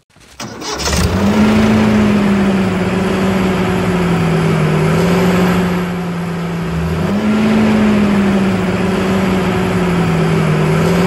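A small toy motor hums steadily.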